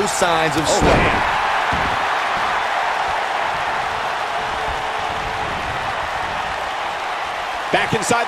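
A large crowd roars and cheers steadily in a big echoing arena.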